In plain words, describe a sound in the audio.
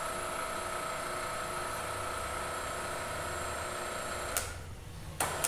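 A pipe bending machine hums steadily with a high whine.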